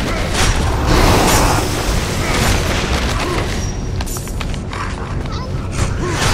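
Magic blasts burst with loud whooshes.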